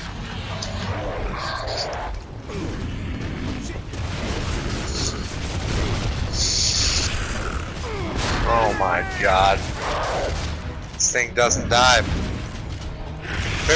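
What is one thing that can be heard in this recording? Gunfire rattles.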